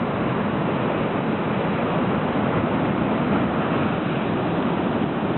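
Waves crash and surge against rocks outdoors.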